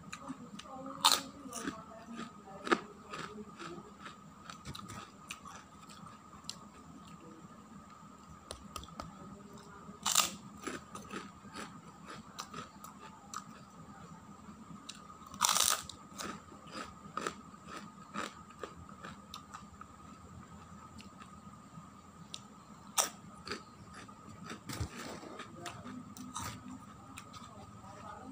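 A man crunches loudly on crispy crackers close by.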